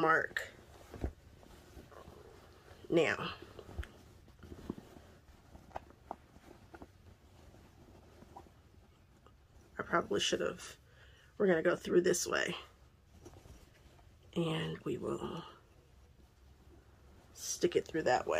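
Fabric rustles as it is handled and gathered.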